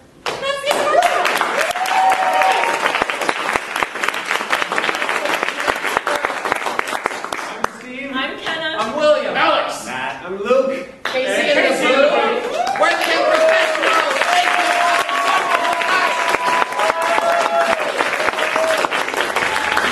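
Young men sing and call out loudly in an echoing hall.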